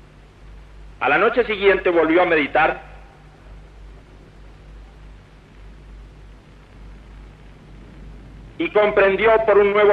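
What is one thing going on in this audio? A man speaks into a microphone in short phrases.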